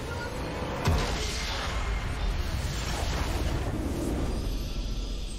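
A loud magical blast booms and crackles.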